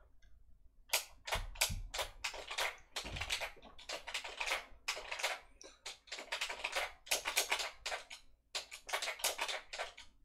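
Video game fighting sounds clash and thump in quick bursts.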